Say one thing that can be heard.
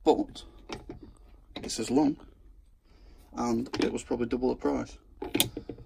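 A plastic bar clamp's trigger clicks as it is squeezed.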